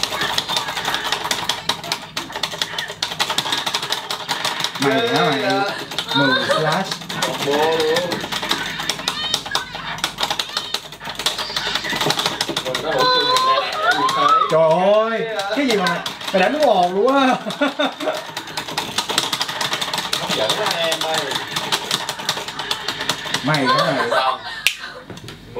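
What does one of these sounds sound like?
Arcade buttons click rapidly under fingers.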